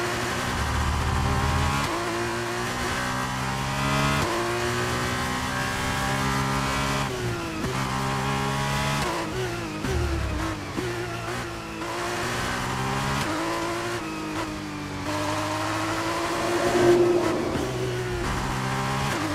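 A racing car engine screams at high revs, shifting up through the gears and dropping pitch when braking for corners.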